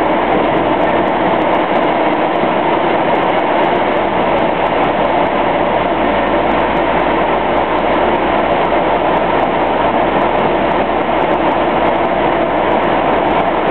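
A car drives steadily through a tunnel, its engine and tyres roaring with a loud echo.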